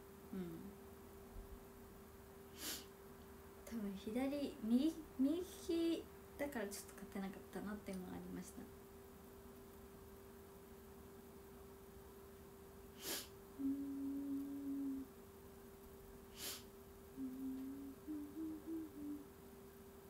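A young woman talks softly and casually close to a microphone.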